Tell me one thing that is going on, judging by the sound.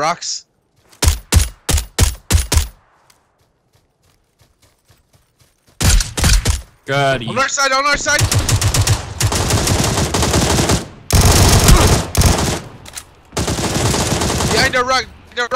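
Guns fire in loud rapid bursts.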